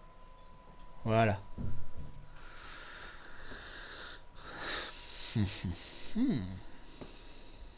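A man talks into a headset microphone, close by.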